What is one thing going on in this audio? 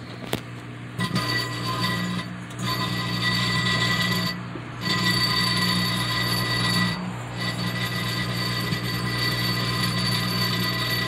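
Sparks crackle and buzz inside a microwave oven.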